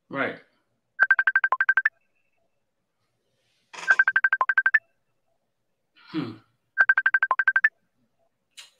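An incoming call ringtone chimes in quick bursts of repeated beeps.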